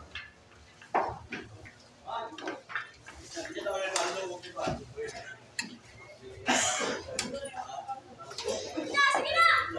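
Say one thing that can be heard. Pool balls click against each other.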